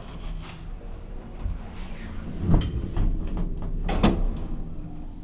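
Elevator doors slide shut with a thud.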